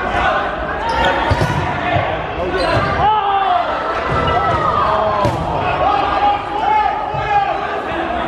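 Balls thud on a wooden floor and bounce.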